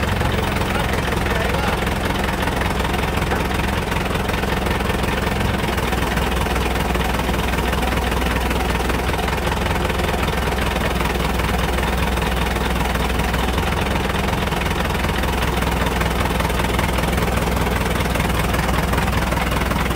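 A crane's engine rumbles steadily nearby.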